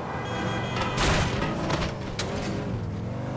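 Wooden boards crash and clatter as a car smashes through them.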